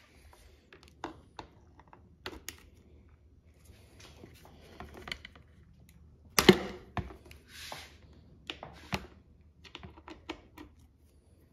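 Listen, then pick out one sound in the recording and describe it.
A wrench clicks and clinks against metal parts.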